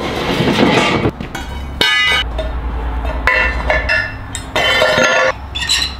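Metal bars clank and clatter against a concrete floor.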